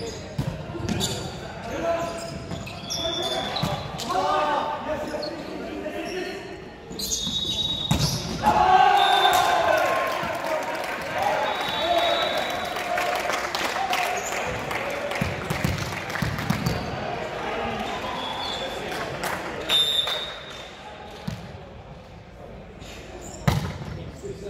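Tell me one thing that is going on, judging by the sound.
Young men call out and shout across a large echoing gym.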